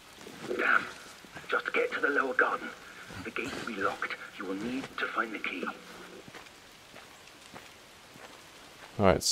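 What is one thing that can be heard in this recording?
Footsteps tread slowly on wet stone.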